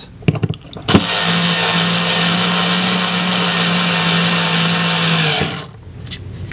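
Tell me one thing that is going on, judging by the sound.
A cordless driver whirs, driving a screw.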